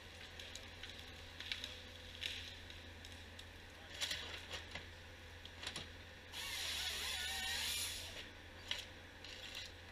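A forestry machine's engine hums steadily nearby.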